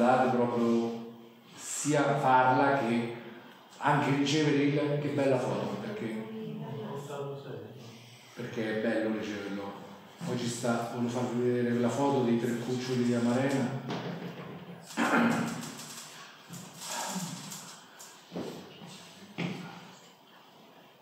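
A middle-aged man speaks calmly into a microphone in a room with slight echo.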